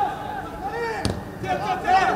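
A football is kicked hard with a thump.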